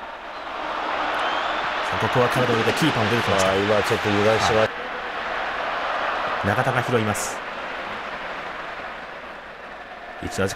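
A large stadium crowd roars steadily outdoors.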